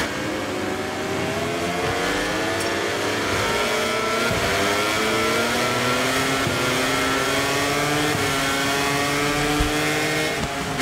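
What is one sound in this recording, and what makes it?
A motorcycle engine revs high and rises in pitch as it speeds up.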